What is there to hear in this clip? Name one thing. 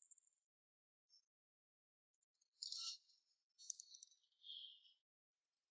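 Fingers tap lightly on a laptop keyboard.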